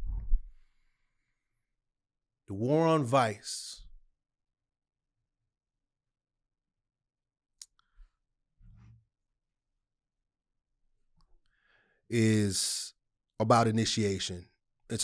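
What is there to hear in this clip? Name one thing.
A man speaks with animation close to a microphone, with long pauses.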